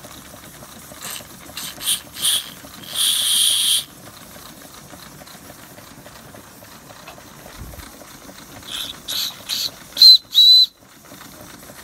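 A small steam whistle toots in short, shrill blasts.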